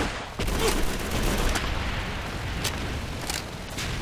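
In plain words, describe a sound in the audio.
A rifle's bolt clicks and clatters during reloading.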